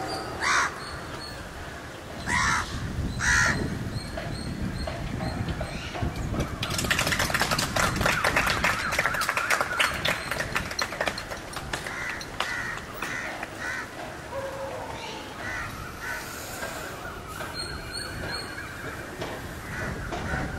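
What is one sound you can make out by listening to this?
A horse's hooves thud softly on sand at a steady walk.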